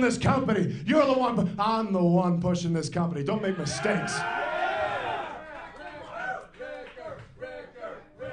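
A man speaks loudly and forcefully into a microphone.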